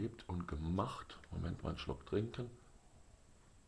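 A man speaks close up with animation.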